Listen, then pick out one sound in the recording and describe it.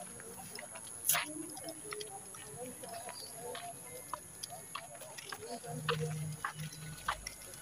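Water splashes and clothes slap as people wash laundry by hand nearby.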